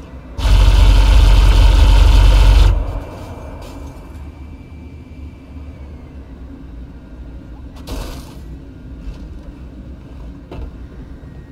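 A spacecraft's engine hums steadily as it flies.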